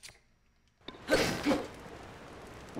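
Torches burst into flame with a whoosh.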